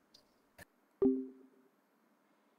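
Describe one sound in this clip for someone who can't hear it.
A short electronic chime sounds as a call ends.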